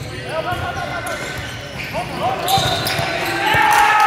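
A volleyball thumps off players' arms.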